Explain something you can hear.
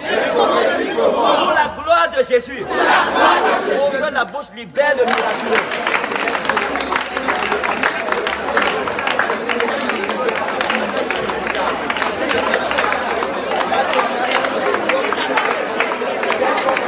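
A crowd sings and cries out together.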